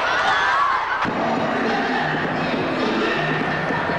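A large crowd cheers in an arena.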